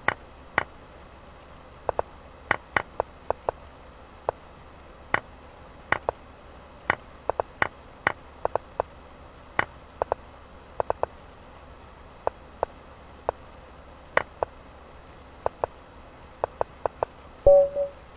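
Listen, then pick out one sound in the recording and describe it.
Short digital clicks sound as chess moves are made, quickly one after another.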